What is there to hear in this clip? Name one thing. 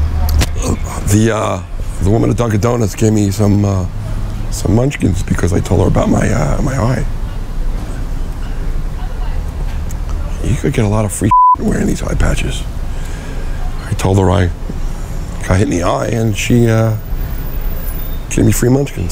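A man talks calmly and close by into a clip-on microphone.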